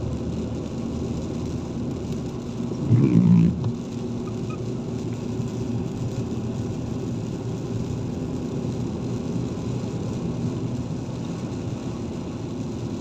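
Rain patters on a windscreen.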